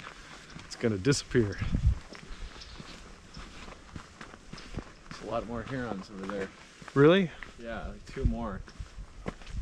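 A man talks calmly close by, outdoors.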